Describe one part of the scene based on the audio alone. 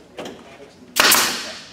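A power drill whirs in a short burst.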